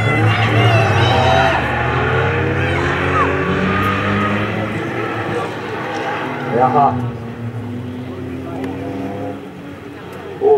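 Car engines roar and rev as cars race past at a distance.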